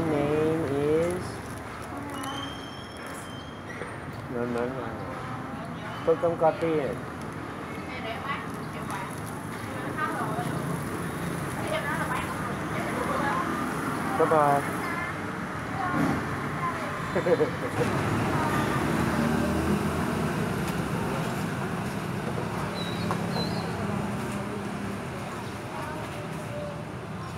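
Street traffic hums steadily outdoors.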